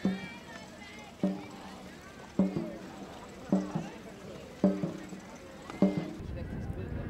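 A drum beats in a slow, steady rhythm.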